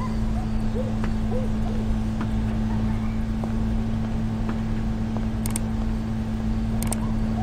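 Footsteps tread slowly on a stone floor.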